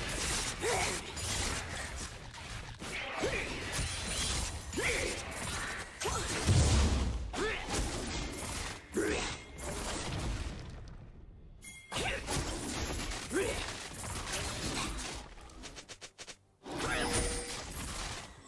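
Game combat effects clash and whoosh in rapid bursts.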